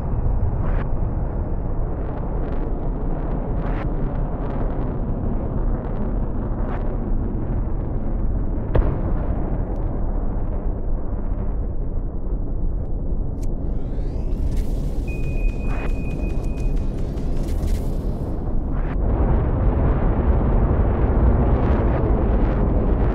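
Jet engines roar steadily and loudly.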